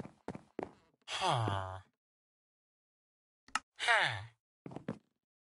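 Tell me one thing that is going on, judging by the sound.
A cartoonish villager grunts with a low, nasal murmur.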